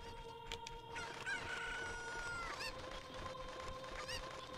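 A chicken squawks and clucks.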